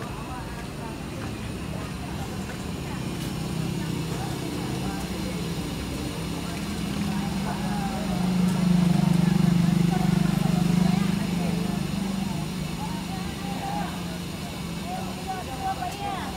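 A crowd of men chatters in the background outdoors.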